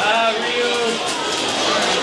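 Electric crackling bursts from a video game through a television speaker.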